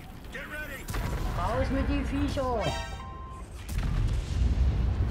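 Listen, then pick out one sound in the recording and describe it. Tank guns fire with loud booms.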